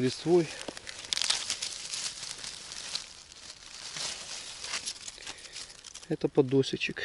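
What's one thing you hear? Dry leaves and twigs rustle and crackle as a mushroom is pulled from the ground.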